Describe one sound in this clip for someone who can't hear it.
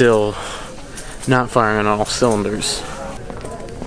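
A man speaks close by, casually.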